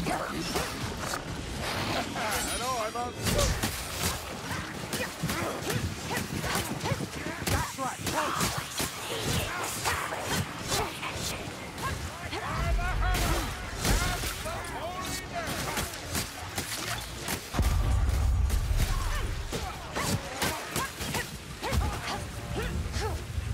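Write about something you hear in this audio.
Blades slash and hack into flesh again and again.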